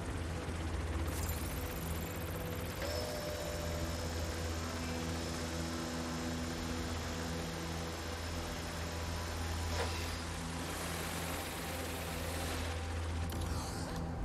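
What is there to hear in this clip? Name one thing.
A drone's propellers whir with a steady, low hum.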